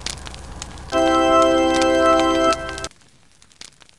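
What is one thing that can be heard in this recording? A short cheerful chime plays.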